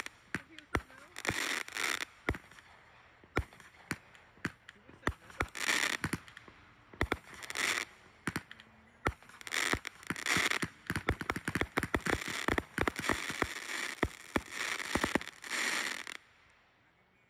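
Fireworks burst with rapid loud bangs and pops.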